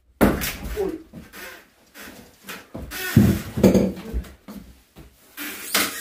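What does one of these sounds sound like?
Old wooden boards creak as they are pried loose.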